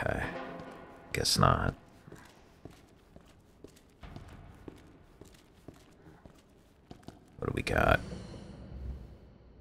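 Footsteps tap on a hard concrete floor at a steady walking pace.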